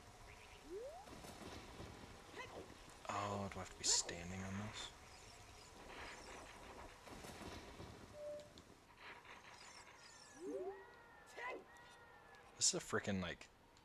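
Video game sound effects chime and whoosh now and then.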